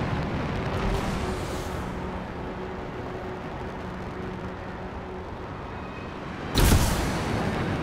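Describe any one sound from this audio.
Wind rushes loudly past during a long fall.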